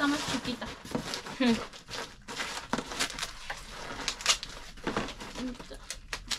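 Plastic packaging crinkles in a woman's hands.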